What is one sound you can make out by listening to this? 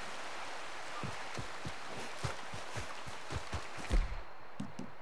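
Footsteps thud softly on grass and earth.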